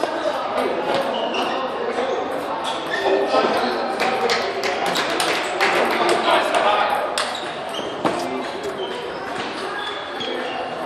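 Ping pong balls click rapidly on tables and paddles.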